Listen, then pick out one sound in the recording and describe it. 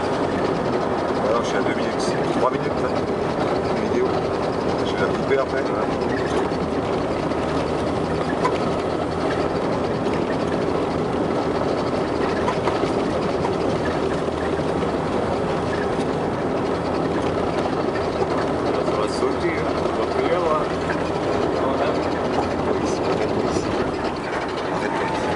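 Tyres crunch and rumble over a rough road.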